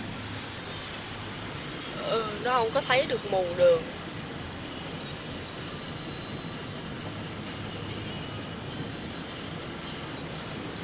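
Tyres hiss on a wet, slushy road.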